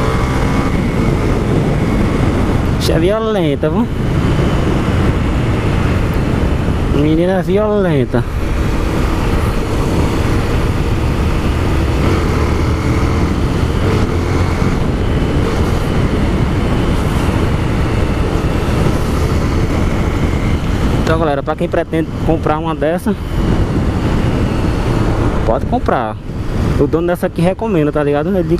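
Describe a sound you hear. A single-cylinder motorcycle engine runs while riding, its revs rising and falling.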